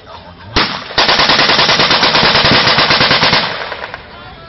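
A machine gun fires a long rapid burst.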